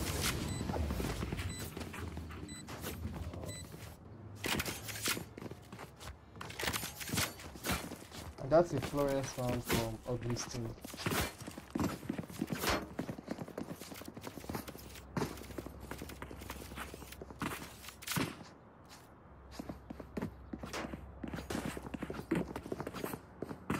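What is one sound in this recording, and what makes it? Quick footsteps run on a hard surface.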